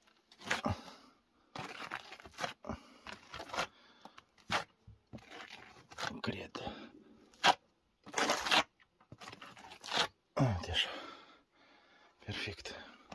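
A metal trowel scrapes wet plaster onto a wall in bursts.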